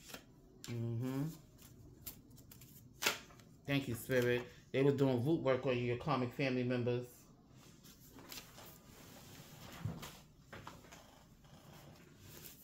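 Paper cards rustle as a hand shuffles them.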